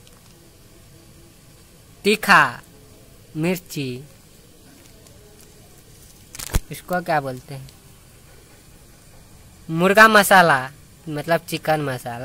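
A plastic packet crinkles in a hand.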